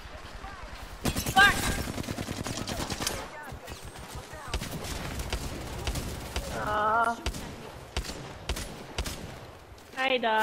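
Rapid gunfire bursts out in loud, fast volleys.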